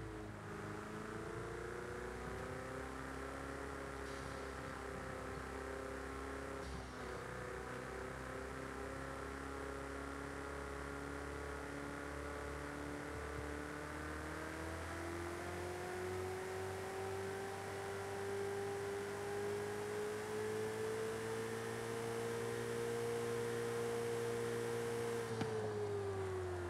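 A sports car engine roars steadily, its pitch rising as it speeds up and dropping briefly at a gear change.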